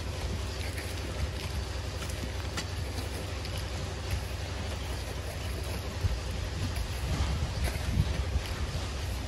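Loose gravel and sand trickle down a slope.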